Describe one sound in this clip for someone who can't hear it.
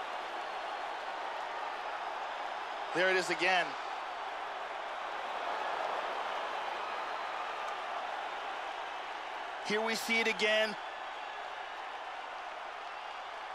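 A crowd murmurs and cheers throughout.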